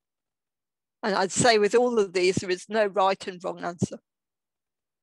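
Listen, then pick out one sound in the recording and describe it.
A woman speaks calmly through an online call.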